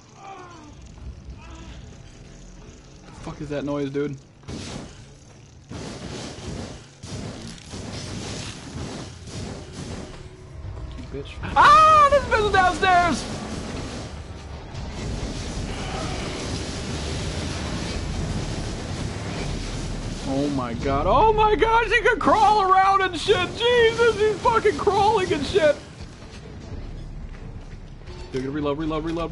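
A young man talks and exclaims with animation close to a microphone.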